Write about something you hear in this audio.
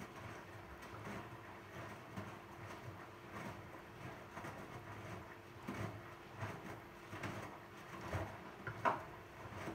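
A washing machine motor hums steadily.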